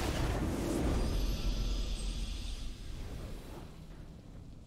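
A bright victory fanfare rings out and fades.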